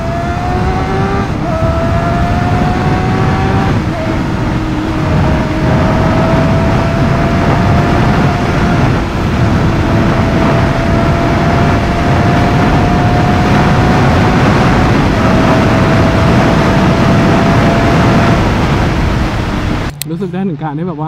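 Wind roars strongly past a fast-moving rider.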